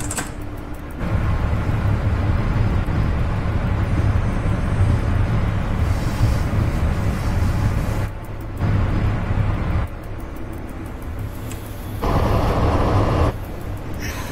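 A train rumbles heavily along the tracks.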